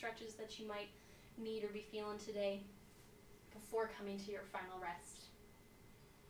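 A woman speaks softly and calmly, close to a microphone.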